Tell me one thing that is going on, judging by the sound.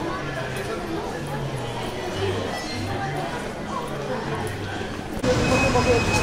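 Voices of a crowd murmur in a large echoing hall.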